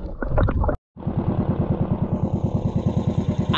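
A boat engine chugs steadily.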